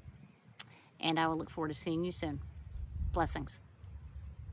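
A woman speaks calmly and close up.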